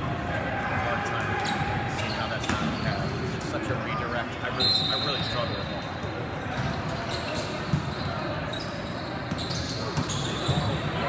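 Many people chatter and call out in a large echoing hall.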